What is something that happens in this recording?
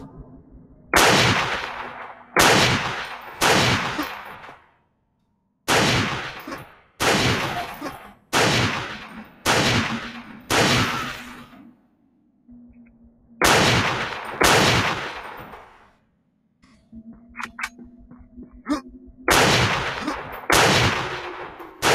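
A rifle fires loud, booming shots again and again, each one ringing out and fading.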